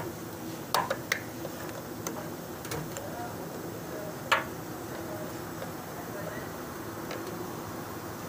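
Small metal parts click and knock sharply now and then.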